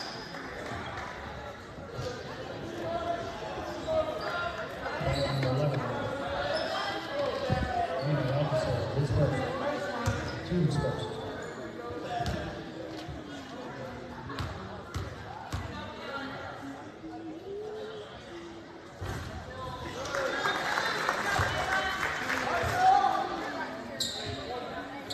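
Basketball shoes squeak on a wooden floor.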